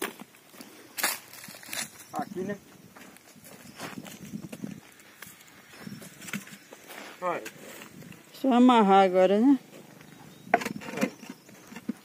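Bricks knock against each other as a man handles them.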